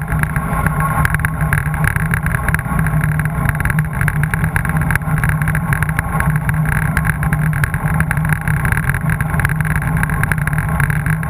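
Wind buffets loudly against the microphone.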